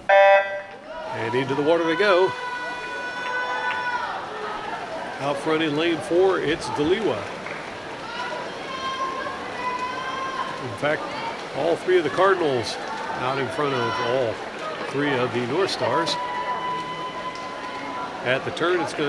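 A crowd of young people cheers and shouts loudly.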